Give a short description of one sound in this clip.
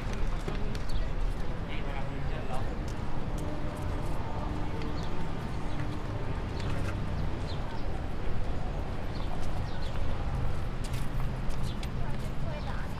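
Distant people chatter outdoors.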